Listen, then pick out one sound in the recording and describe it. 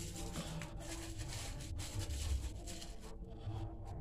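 Plastic tape crinkles and stretches as it is wound by hand.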